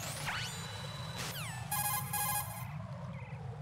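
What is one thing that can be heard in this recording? Electronic radio beeps chirp in quick bursts.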